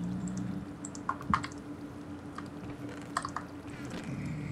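Soft clicks sound as items are moved about.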